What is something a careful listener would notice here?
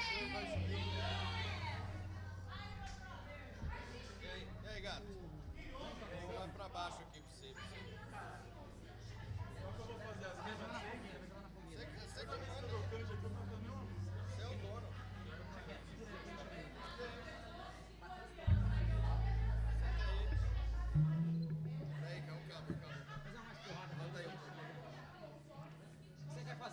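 A man plays a bass guitar.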